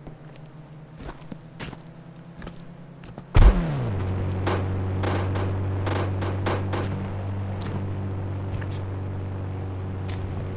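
Phone keypad buttons click in quick taps.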